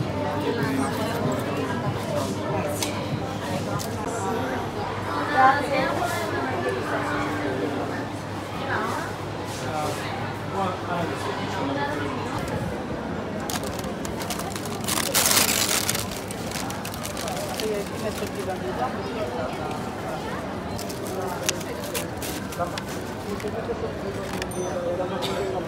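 Several adults chatter and talk at once close by, in a busy crowd.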